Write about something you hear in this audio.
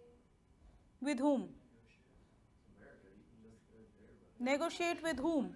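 A young woman speaks calmly and clearly.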